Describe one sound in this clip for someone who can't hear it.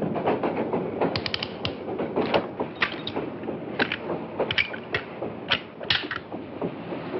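Small metal objects click and rattle as hands handle them.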